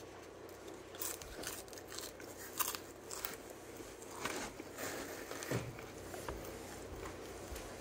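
A young boy bites and chews food close by.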